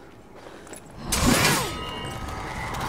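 A sword is drawn sharply from its sheath.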